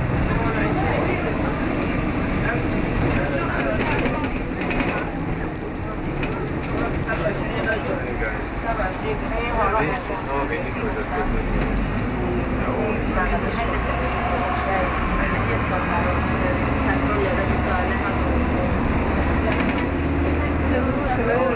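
A bus engine rumbles steadily while the bus drives through traffic.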